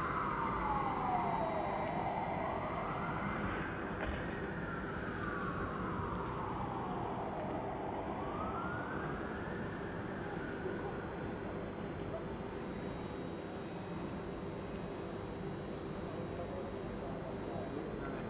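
An electric train rolls slowly toward the listener along the tracks.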